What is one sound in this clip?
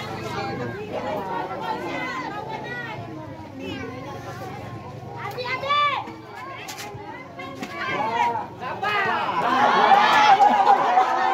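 A crowd of young spectators shouts and cheers excitedly nearby, outdoors.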